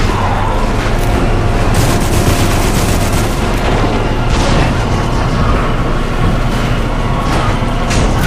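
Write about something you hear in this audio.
A tank engine rumbles loudly.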